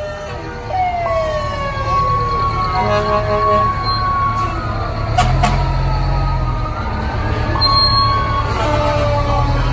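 Fire truck air horns blast in short bursts.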